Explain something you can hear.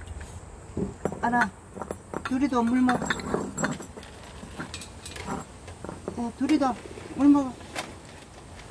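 A woman speaks softly in a high, cooing voice close by.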